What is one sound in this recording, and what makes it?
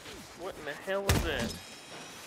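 A heavy blow lands with a loud thud.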